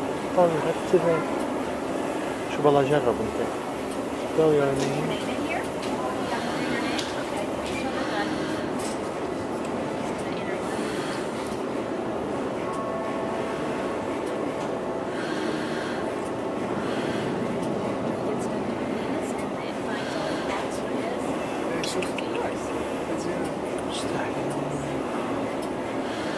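A robot arm whirs as it moves.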